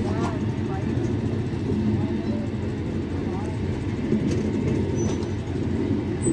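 A passenger train rumbles past close by, its wheels clattering on the rails.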